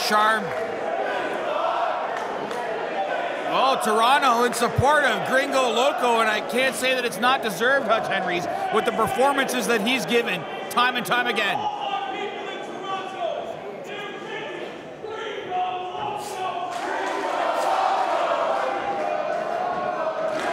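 A large crowd cheers and chants in an echoing hall.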